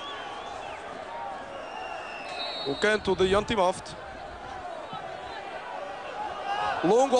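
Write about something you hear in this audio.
A large stadium crowd murmurs and cheers steadily outdoors.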